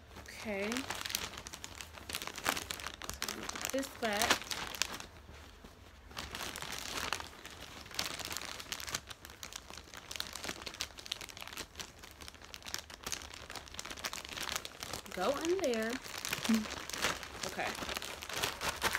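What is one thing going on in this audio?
Paper and plastic packaging crinkle and rustle close by.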